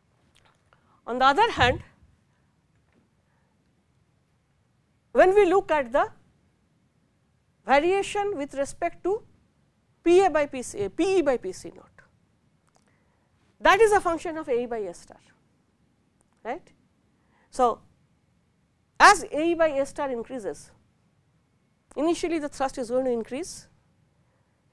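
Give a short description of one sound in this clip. A man lectures calmly into a clip-on microphone, in short bursts with pauses.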